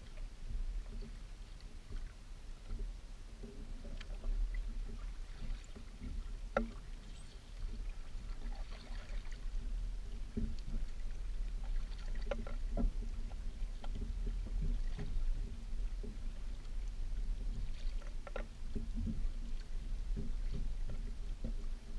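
A kayak paddle dips and splashes in the water.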